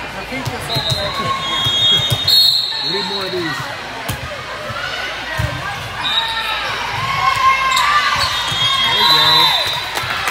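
A volleyball is struck with dull thumps.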